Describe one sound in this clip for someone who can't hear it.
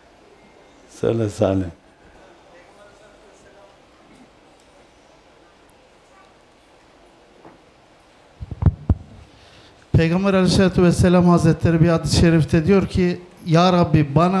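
An elderly man speaks slowly and loudly into a microphone.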